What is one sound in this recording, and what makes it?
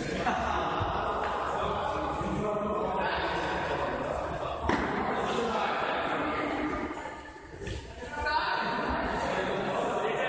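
A ball is kicked with dull thumps.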